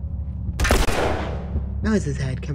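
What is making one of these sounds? A gun fires once with a loud, echoing bang.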